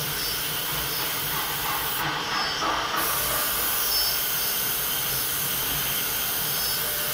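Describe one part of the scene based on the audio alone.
A routing machine whirs and hisses steadily and loudly.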